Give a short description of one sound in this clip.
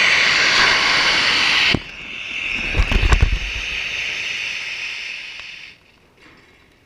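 A small rocket motor hisses and roars loudly, then dies away.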